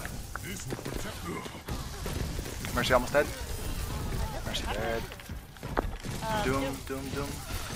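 Gunfire and blasts ring out in a close fight.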